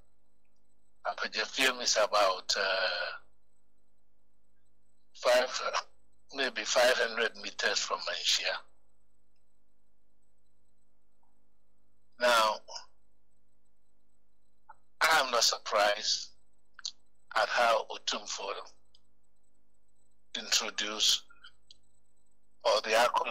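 A man speaks into a microphone in short bursts with pauses in between.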